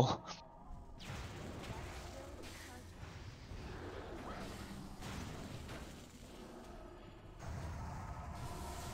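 Magic spells crackle and whoosh in a battle.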